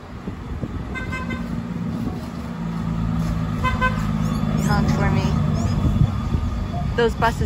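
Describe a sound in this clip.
A bus engine rumbles nearby as the bus passes.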